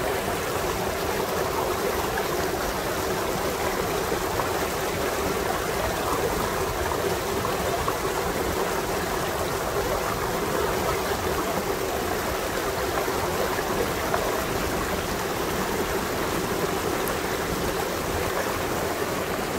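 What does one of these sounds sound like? Water rushes and splashes steadily over rocks close by.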